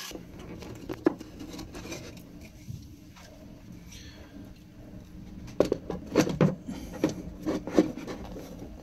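Metal fittings clatter and knock as a panel is set in place.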